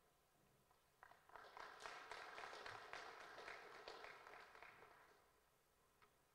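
An audience applauds in a hall.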